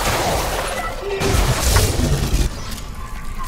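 A heavy boot stomps down with loud, wet thuds.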